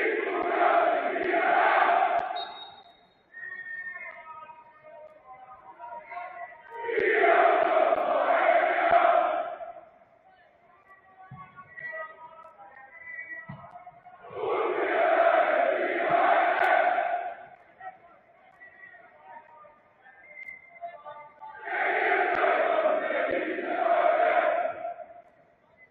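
A large stadium crowd chants loudly in regular, repeating bursts.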